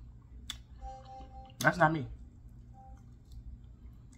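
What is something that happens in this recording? A woman chews and smacks her lips while eating.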